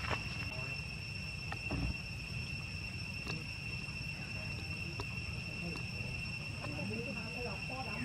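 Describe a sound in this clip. A monkey crinkles a plastic wrapper.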